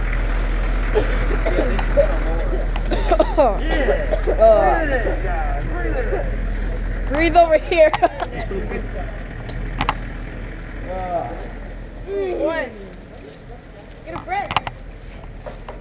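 Young men and boys talk and call out to each other nearby, outdoors.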